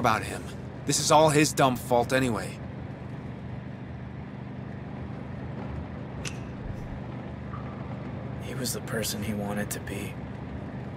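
A young man speaks tensely and quietly.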